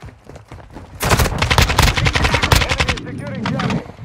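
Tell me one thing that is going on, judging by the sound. Rapid gunfire rattles loudly at close range.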